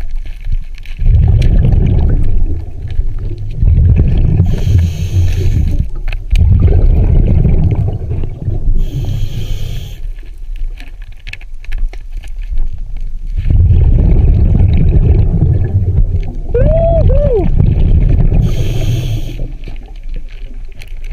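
A diver breathes slowly and heavily through a regulator underwater.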